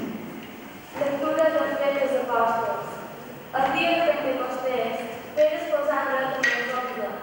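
A young girl sings into a microphone, echoing in a large hall.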